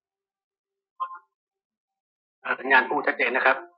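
An elderly man speaks into a phone close by, with pauses.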